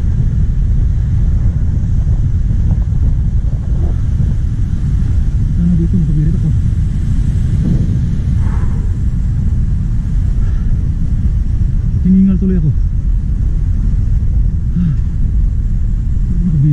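Wind rumbles steadily against the microphone.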